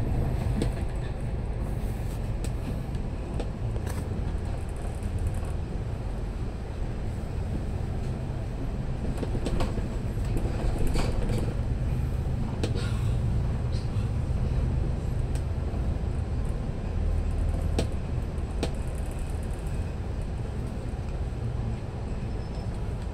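A vehicle's engine rumbles steadily while driving along a road.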